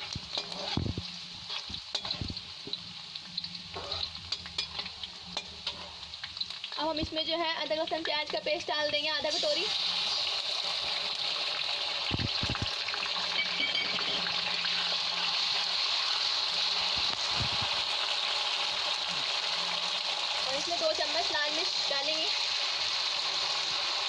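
A metal spoon scrapes against the pan.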